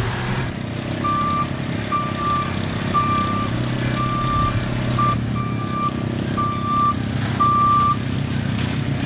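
A backhoe's warning alarm beeps repeatedly.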